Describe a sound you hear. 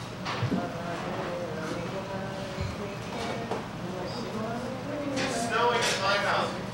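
A man speaks with animation into a microphone, heard through loudspeakers in a small echoing room.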